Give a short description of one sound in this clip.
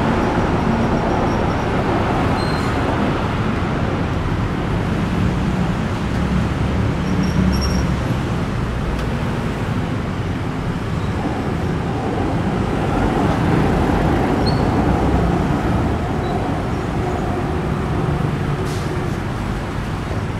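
City traffic rumbles steadily nearby, with engines idling and cars passing.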